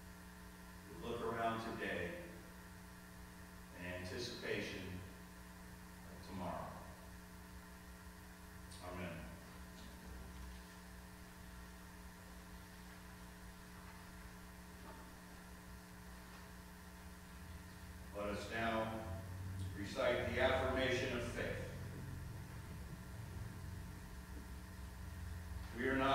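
A man speaks slowly and calmly into a microphone in a large echoing hall.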